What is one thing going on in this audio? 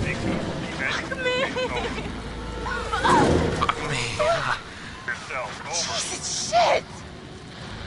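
A young woman speaks breathlessly and strains nearby.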